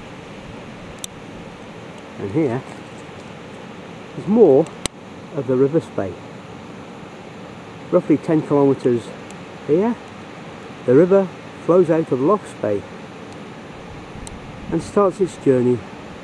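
A river rushes over rocks.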